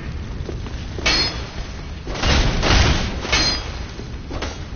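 Bursts of fire whoosh and crackle.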